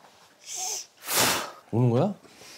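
A man sighs heavily close by.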